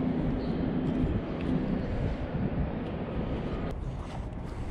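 Wind blows hard outdoors.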